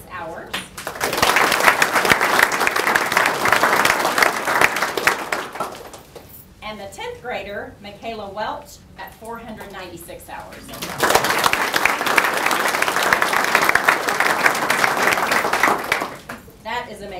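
A group of people applauds loudly.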